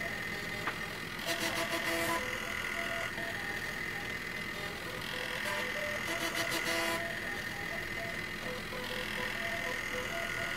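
Disc drive motors whine and buzz in short pitched bursts, like a tune.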